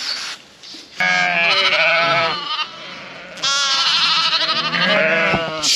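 Sheep and lambs bleat loudly nearby.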